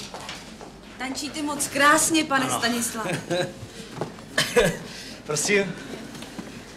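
A man talks cheerfully and laughs close by.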